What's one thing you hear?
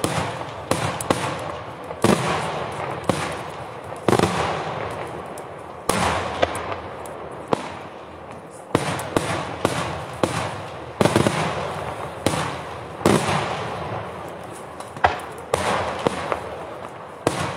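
Fireworks burst with loud booming bangs that echo across open air.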